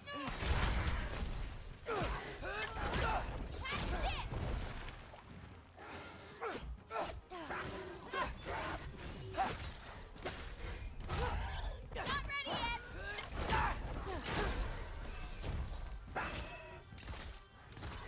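Weapons clash and strike with loud, sharp impacts.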